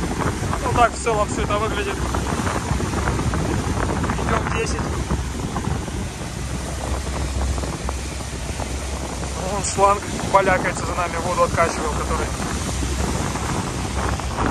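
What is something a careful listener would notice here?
Water churns and rushes in a boat's wake.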